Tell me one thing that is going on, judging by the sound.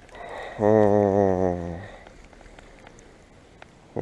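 A fishing reel whirs as its handle is cranked.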